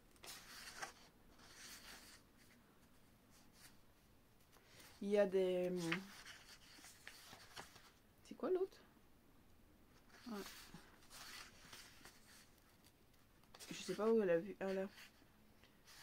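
Paper pages rustle and flip.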